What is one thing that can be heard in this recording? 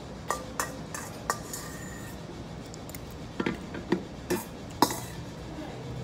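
A metal bowl clinks against a table.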